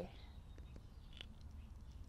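A young woman bites and crunches into a chocolate bar.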